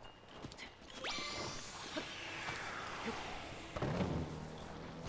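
A magical whoosh sweeps downward in pitch.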